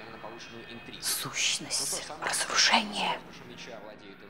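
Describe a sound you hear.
An older woman speaks with animation, close to a microphone.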